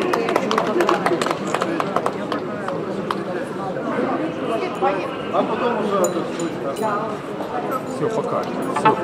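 A middle-aged man speaks calmly in a large echoing hall.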